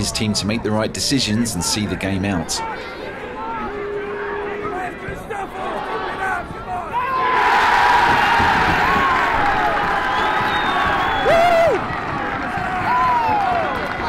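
Men shout across an outdoor pitch.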